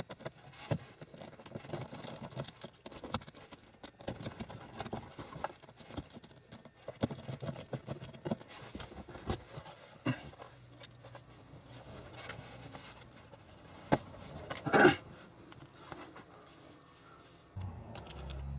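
Hands rustle and click plastic and rubber parts close by.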